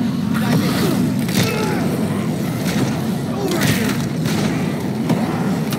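A crowd of zombies groans and moans all around.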